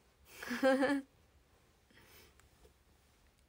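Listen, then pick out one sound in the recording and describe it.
A young woman laughs brightly, close by.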